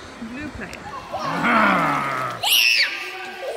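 A small boy squeals and laughs close by.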